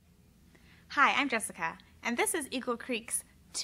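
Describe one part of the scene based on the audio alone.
A young woman speaks cheerfully and clearly, close to a microphone.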